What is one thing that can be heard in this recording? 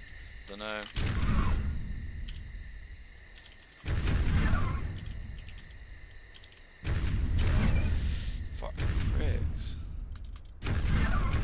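Large wings beat in heavy, whooshing gusts.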